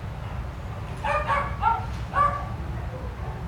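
Dogs bark a few times nearby.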